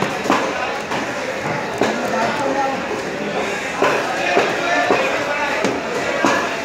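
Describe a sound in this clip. A heavy knife chops through fish on a wooden block with sharp thuds.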